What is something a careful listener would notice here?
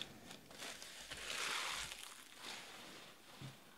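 A foil wrapper tears open.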